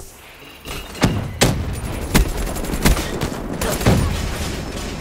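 Automatic rifle gunfire rings out in bursts in a video game.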